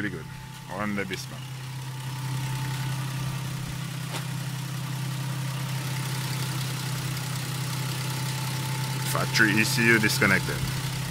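An engine idles with a steady low hum.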